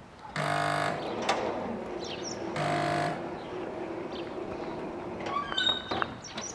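A crossing barrier arm lowers with a motor hum.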